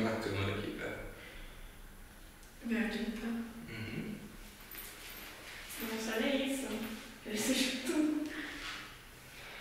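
A young woman talks casually nearby in a small echoing room.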